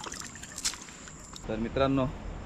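Water splashes and drips from a net.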